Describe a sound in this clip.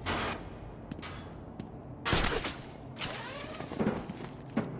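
A metal grate is yanked off a wall with a loud clang.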